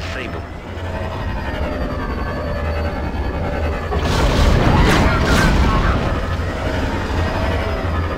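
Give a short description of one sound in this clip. Spaceship engines roar steadily.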